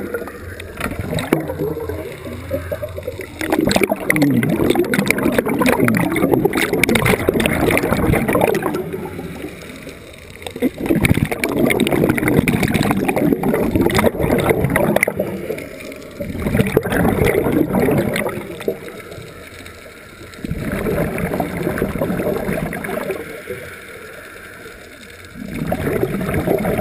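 Scuba exhaust bubbles gurgle and rumble in loud bursts, heard underwater.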